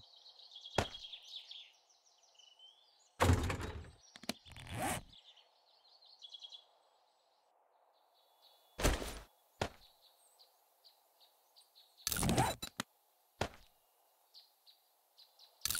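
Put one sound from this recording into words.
Short game menu clicks and thumps sound now and then.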